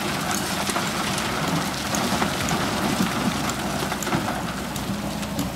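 Rocks and earth tumble from an excavator bucket into a truck bed.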